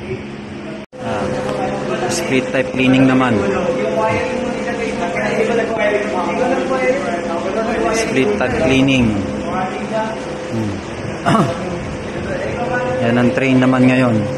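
Several young men and women talk and chatter nearby.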